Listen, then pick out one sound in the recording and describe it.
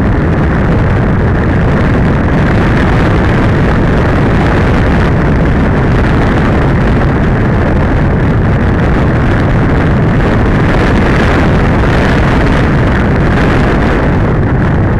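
Wind rushes loudly and steadily past.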